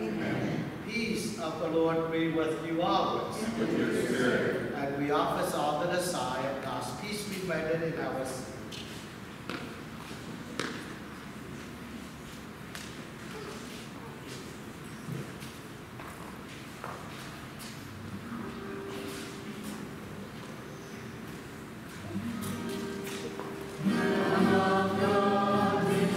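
A man chants in a large, echoing hall.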